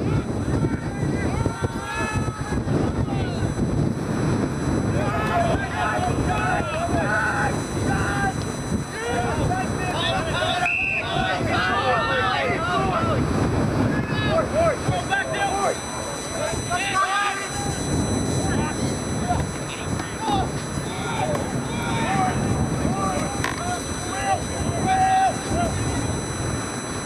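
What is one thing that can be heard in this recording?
Players shout and call out to each other across an open field.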